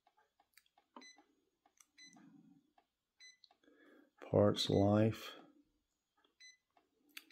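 A device's control panel gives short high beeps as its buttons are pressed.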